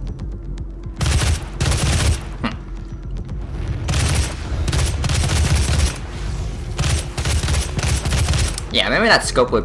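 A heavy gun fires in loud rattling bursts.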